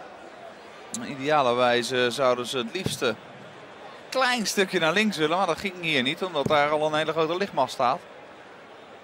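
A crowd chants and cheers loudly.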